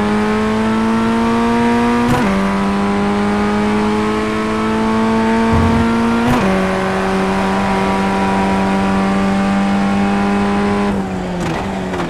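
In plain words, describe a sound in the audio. A race car engine screams at high revs, shifting up through the gears.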